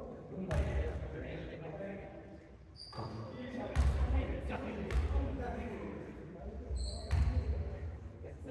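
A ball bounces on a wooden floor with hollow thuds.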